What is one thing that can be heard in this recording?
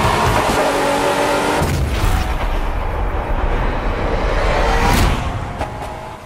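Racing car engines roar loudly as the cars speed past.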